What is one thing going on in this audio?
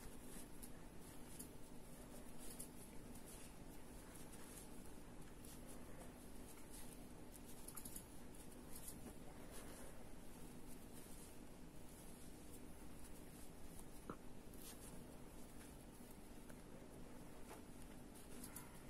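Knitting needles click and tap softly as yarn is worked.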